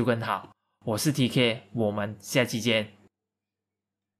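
A young man speaks cheerfully and close to a microphone.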